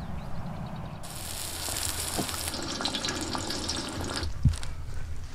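Food sizzles in hot fat on a griddle.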